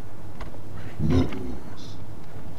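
A man speaks briefly, close to a microphone.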